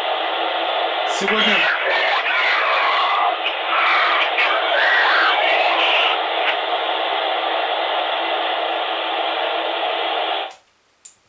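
A handheld radio hisses with loud, steady static.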